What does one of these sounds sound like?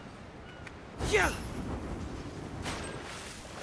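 A loud splash of water bursts up.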